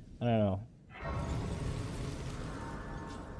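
A shimmering chime rings out and lingers.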